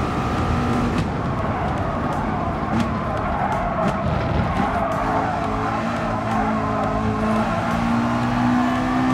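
Tyres squeal as a race car brakes into a corner.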